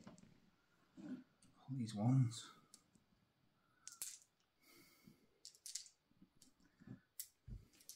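Plastic dice clatter onto a table.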